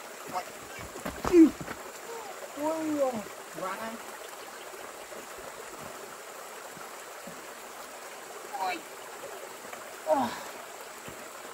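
A young child babbles nearby.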